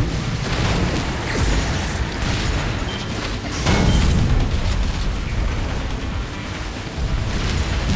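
A boat engine hums steadily over water.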